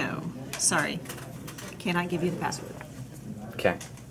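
A middle-aged woman speaks calmly, close by.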